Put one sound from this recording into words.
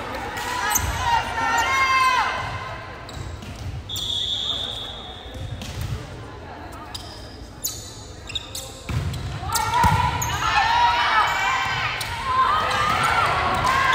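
Shoes squeak sharply on a wooden floor.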